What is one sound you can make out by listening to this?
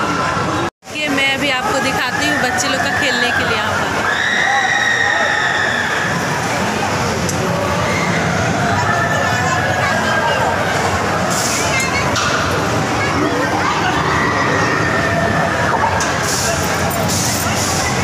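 Arcade machines play electronic jingles and beeps.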